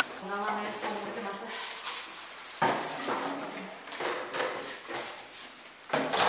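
A cloth rubs and wipes across desktops.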